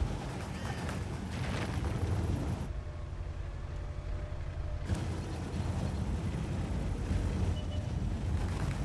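A tank engine rumbles low and steady as the tank drives.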